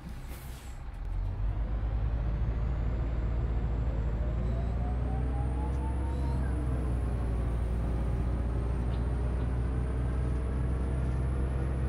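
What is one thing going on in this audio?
A bus engine revs up and whines rising as the bus drives off.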